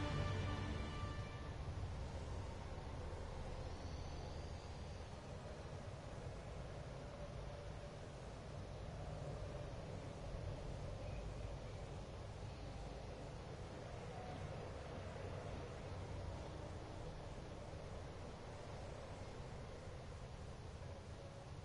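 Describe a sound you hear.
Game menu music plays steadily.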